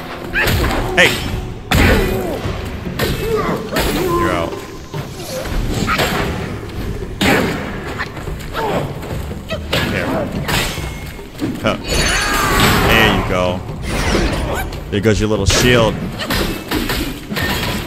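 Swords clash and clang with sharp metallic rings.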